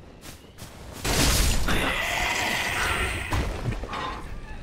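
Metal clashes and slashes in a fight.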